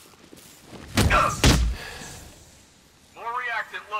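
A heavy punch thuds against a man's body.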